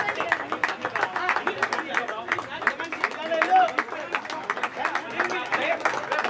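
A group of men cheer and shout nearby.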